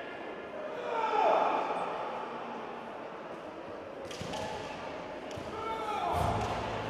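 A young woman gives sharp, long shouts in a large echoing hall.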